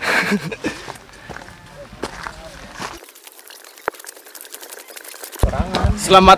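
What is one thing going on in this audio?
Footsteps crunch on a rocky trail.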